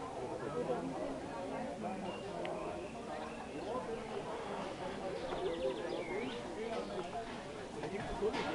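A crowd of men and women chatter and talk outdoors nearby.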